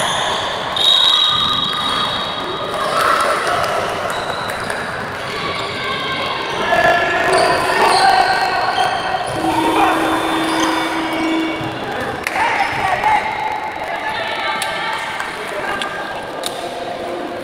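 A handball thuds as players bounce and pass it.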